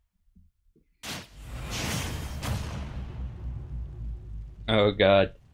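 A sharp crash sound effect hits, followed by a rushing whoosh that slowly fades.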